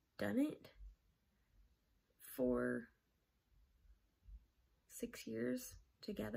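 A young woman speaks calmly and close to the microphone, in short bursts with pauses.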